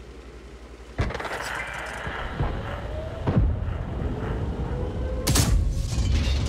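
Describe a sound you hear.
A tank cannon fires with sharp, booming blasts.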